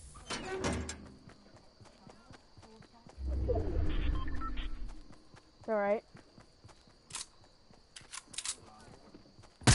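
Footsteps run through grass.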